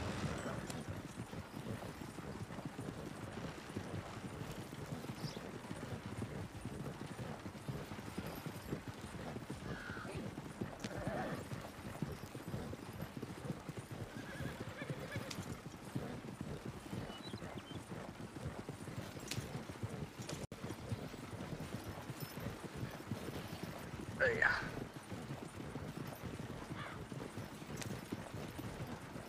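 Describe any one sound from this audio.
Horse hooves clop steadily on the dirt.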